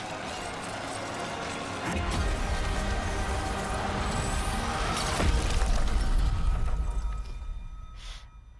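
A magical energy blast roars loudly and crackles.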